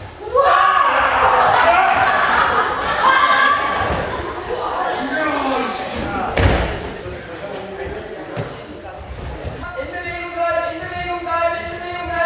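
A group of young adults shout excitedly in an echoing hall.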